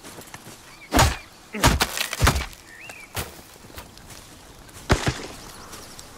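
An axe chops into wood with sharp, heavy thuds.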